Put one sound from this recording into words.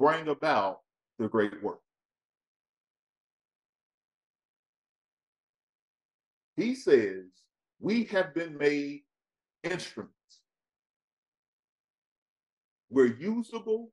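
A man speaks calmly and clearly close to a microphone, in short phrases with long pauses.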